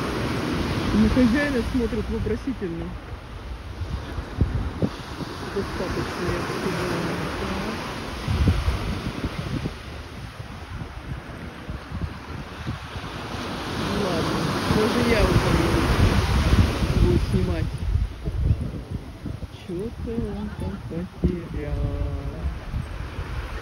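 A man talks nearby in a friendly voice.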